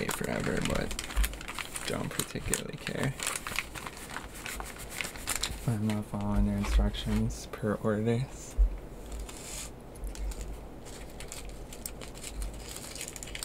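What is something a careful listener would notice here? Foil and paper packets crinkle and rustle as they are handled.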